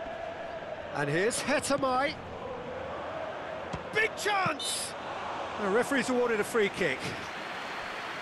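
A stadium crowd whistles loudly in bursts.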